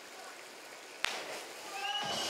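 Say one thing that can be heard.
A diver plunges into water with a splash.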